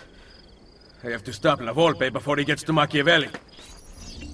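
A young man speaks quietly and tensely, close by.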